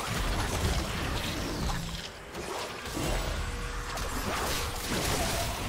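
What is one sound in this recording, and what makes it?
Video game spells whoosh and crackle during a fight.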